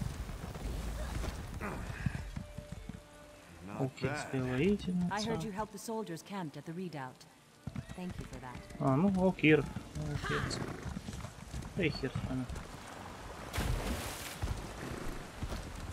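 A horse's hooves thud as it trots.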